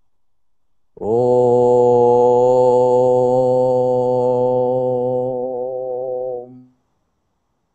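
An elderly man hums one long, steady note close to a microphone.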